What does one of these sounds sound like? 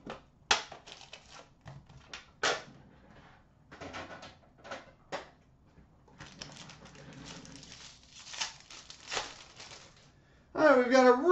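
Card packs rustle and click as hands rummage through a bin.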